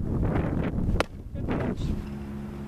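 A softball smacks into a leather glove.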